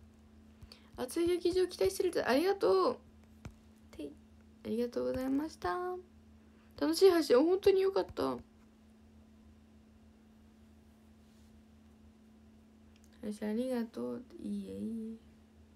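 A young woman speaks animatedly and close up, in bursts with pauses.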